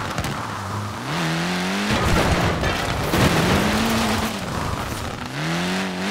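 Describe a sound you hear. Tyres screech as a car slides around a corner.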